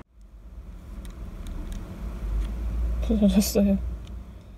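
A plastic car key clicks and rattles softly in a person's fingers.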